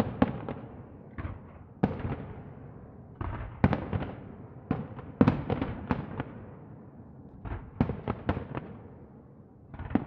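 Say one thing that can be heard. Fireworks boom and crackle in rapid bursts, echoing outdoors.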